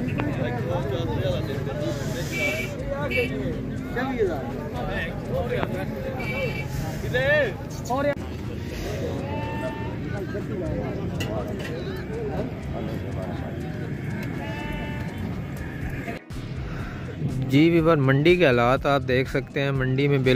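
Men talk and call out nearby in a busy outdoor crowd.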